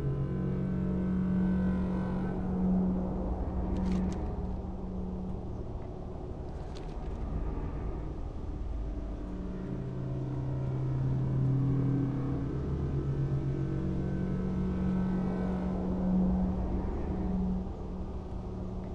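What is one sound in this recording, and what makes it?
A deep magical energy drone hums steadily throughout.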